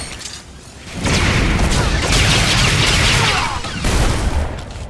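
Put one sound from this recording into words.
An explosion roars loudly.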